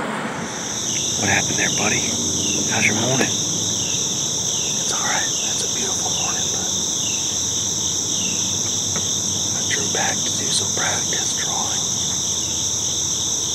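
A man speaks softly and closely in a hushed voice.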